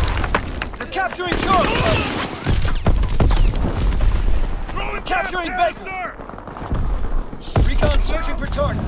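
Gunshots ring out in sharp bursts.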